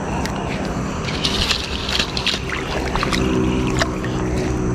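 A fish flaps and splashes in the water.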